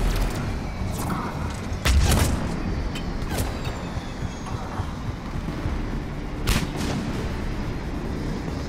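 Heavy armoured footsteps thud on a hard floor.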